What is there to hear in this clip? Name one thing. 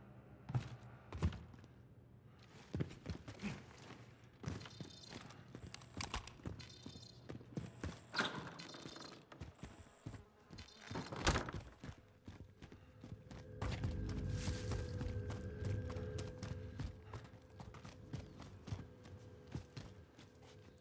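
Footsteps thud quickly on hard ground and floors.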